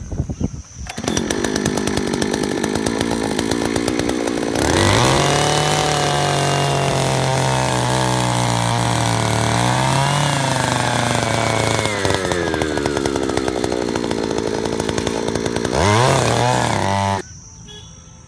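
A small petrol engine roars loudly and revs up and down.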